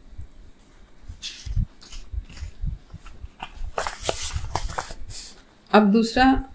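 Pages rustle and a book is handled.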